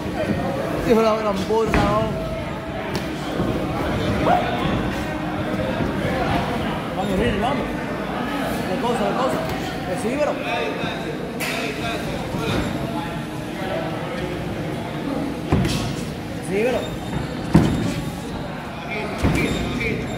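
Boxers' shoes squeak and scuff on the canvas.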